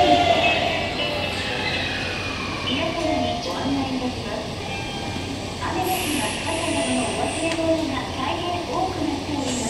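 Train brakes squeal with high, wavering tones.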